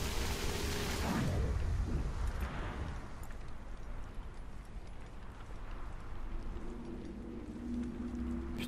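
Footsteps crunch quickly over loose stones.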